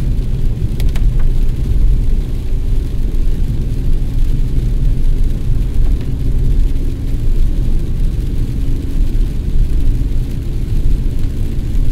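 Rain patters on the windshield.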